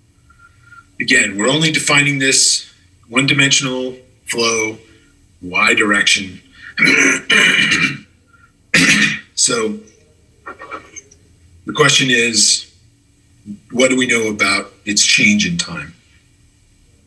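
A man lectures calmly through a microphone in an online call.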